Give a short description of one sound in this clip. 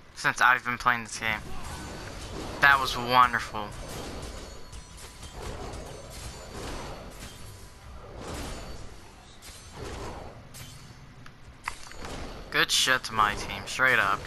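Weapons clash and strike in a fast fight.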